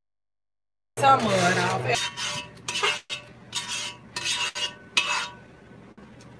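Soft food plops and squelches into a foil tray.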